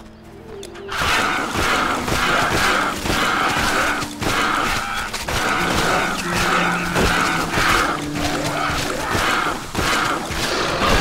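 Weapons strike and clash in a fast fight.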